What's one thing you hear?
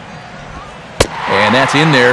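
A baseball smacks into a catcher's mitt with a sharp pop.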